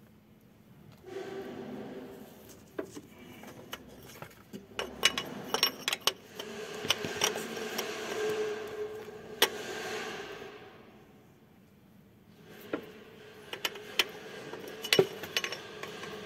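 A metal wrench clicks and scrapes against a bolt.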